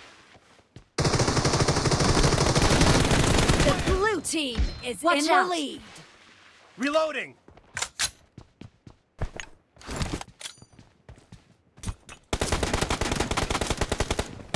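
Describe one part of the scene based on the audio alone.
Rapid bursts of automatic rifle fire crack out close by.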